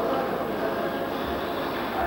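A metal frame scrapes and rattles across a hard floor in an echoing hall.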